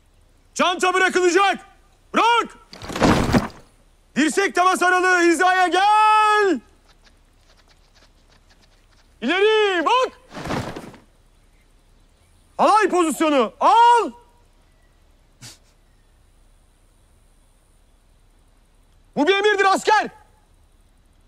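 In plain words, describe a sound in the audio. A man shouts commands loudly outdoors.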